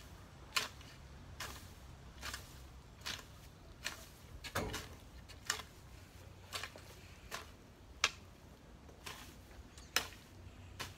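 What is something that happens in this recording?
A hoe scrapes and chops into dry soil in short regular strokes.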